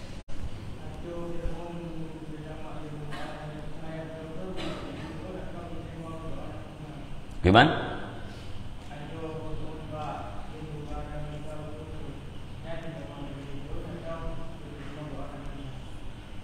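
A middle-aged man speaks calmly and slowly into a close microphone.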